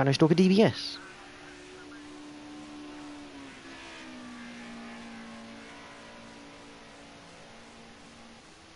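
A racing car engine drones steadily as the car speeds along a track.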